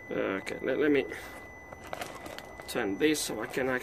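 Gravel crunches as someone shifts on the ground.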